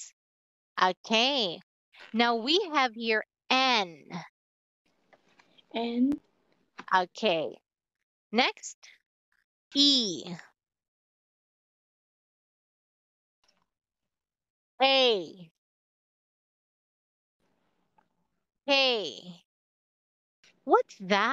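A woman reads out single letters slowly and clearly over an online call, with pauses between them.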